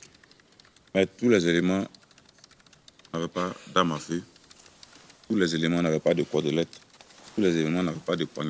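A young man speaks slowly into a microphone, with pauses.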